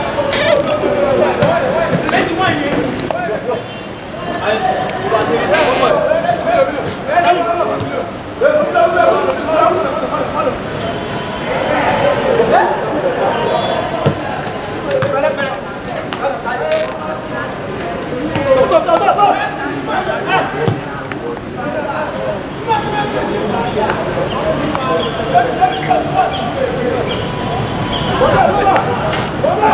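Young men shout and call out to each other across an open outdoor field.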